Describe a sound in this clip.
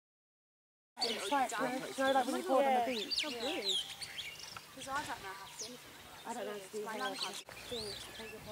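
A starling chirps and warbles.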